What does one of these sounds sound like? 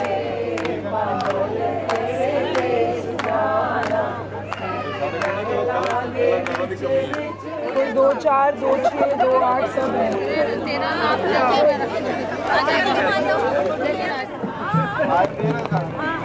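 A group of women chatter and laugh nearby.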